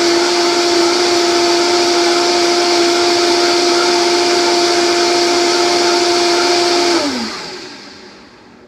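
A blender whirs loudly at high speed, then winds down.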